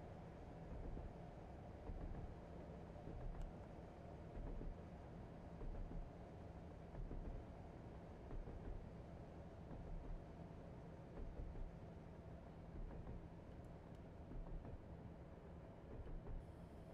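A train engine hums steadily from inside the cab.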